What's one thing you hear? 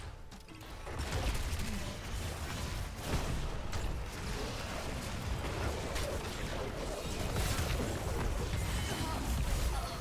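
Game spells zap, crackle and explode in a busy battle.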